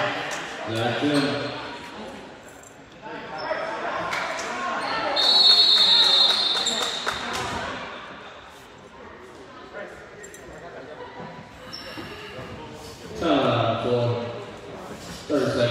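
Spectators shout and cheer loudly in an echoing gym.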